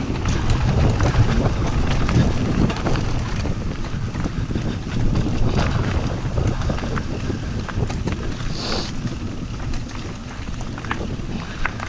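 Bicycle tyres roll and crunch over a dirt trail at speed.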